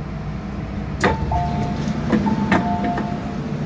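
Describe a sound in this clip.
An elevator door clunks and rumbles as it slides open.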